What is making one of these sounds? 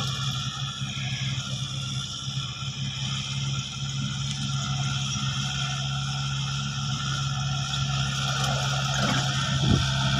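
A tractor's tiller churns and rattles through dry soil.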